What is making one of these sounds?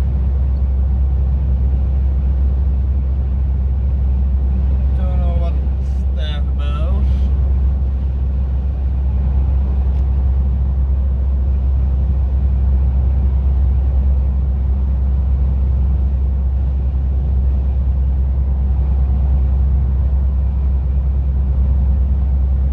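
A car engine hums steadily with road rumble from inside a moving vehicle.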